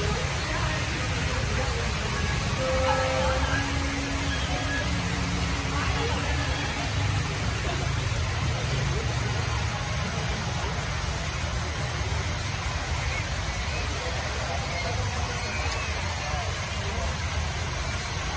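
Water splashes and trickles steadily down a small waterfall.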